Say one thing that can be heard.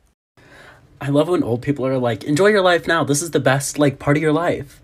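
A young man talks with animation, close by.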